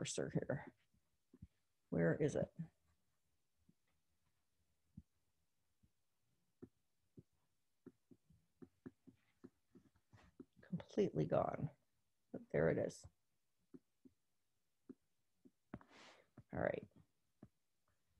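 A woman speaks calmly into a close microphone, with pauses.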